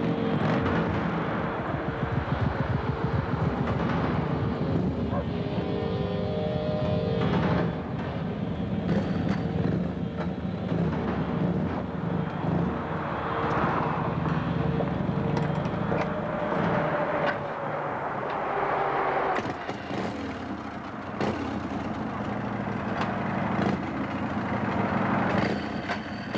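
Motorcycle engines rumble and idle close by.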